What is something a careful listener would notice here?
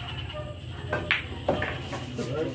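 Billiard balls clack sharply together.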